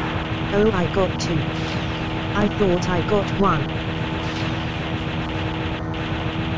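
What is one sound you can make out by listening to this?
A video game biplane's engine drones.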